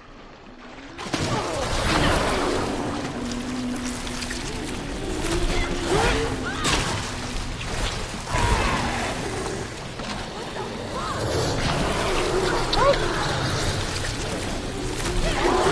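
A monster snarls and growls fiercely up close.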